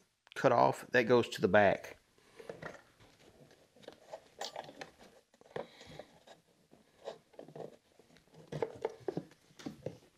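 Plastic parts click and rattle as a man handles them.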